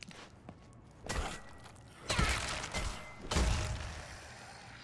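A weapon strikes a body with heavy, wet thuds.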